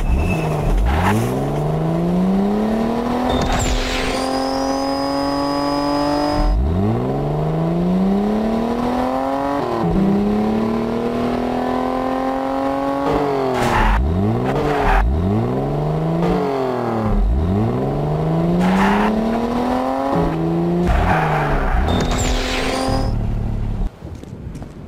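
A buggy engine revs up and shifts through gears again and again.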